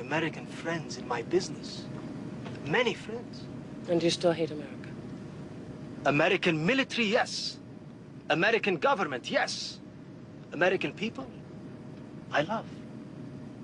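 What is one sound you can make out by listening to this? A young man speaks quietly and earnestly.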